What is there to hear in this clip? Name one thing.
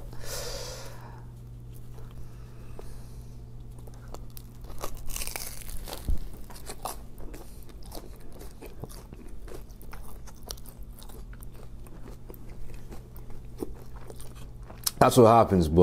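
A young man chews food with soft, wet crunches close to a microphone.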